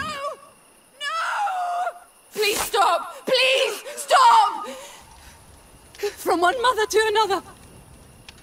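A woman pleads desperately, crying out.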